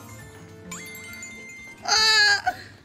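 Cheerful game music plays with chiming tones.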